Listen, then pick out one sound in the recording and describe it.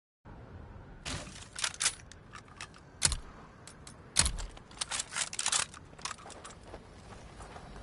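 Gunshots crack in quick, sharp bursts.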